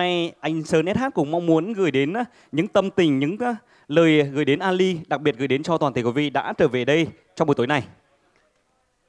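A young man speaks with animation through a microphone and loudspeakers.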